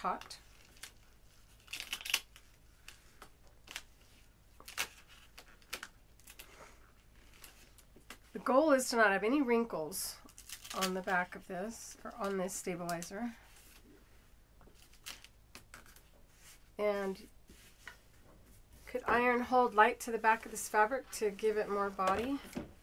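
A thin plastic sheet crinkles and rustles as it is handled.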